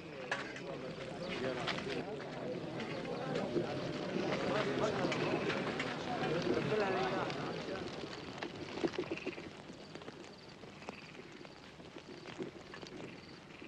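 A crowd of men murmurs and calls out.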